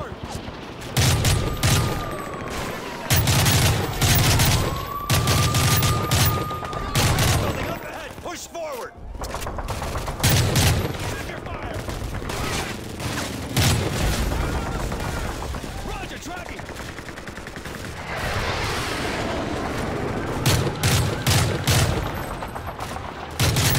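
A rifle fires in sharp bursts of gunshots.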